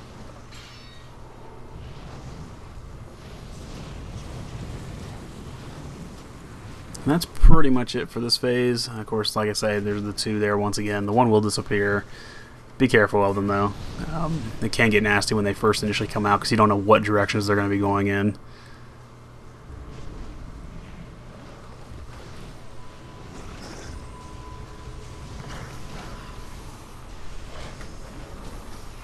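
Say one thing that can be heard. Spells crackle and whoosh in a busy battle.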